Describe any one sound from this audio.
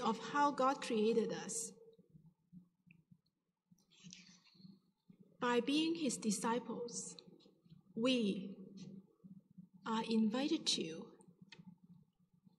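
A woman speaks calmly into a microphone in a room with a slight echo.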